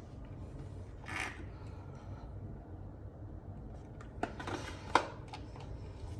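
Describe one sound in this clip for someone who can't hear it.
Paper toiletry packets rustle and tap as a hand picks them up.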